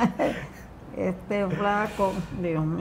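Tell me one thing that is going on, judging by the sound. An elderly woman talks nearby.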